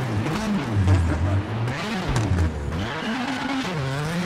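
Tyres skid on a slippery road.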